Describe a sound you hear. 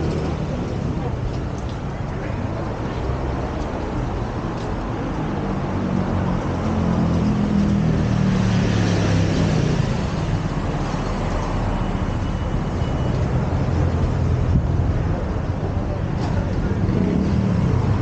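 Traffic rumbles steadily along a busy street nearby.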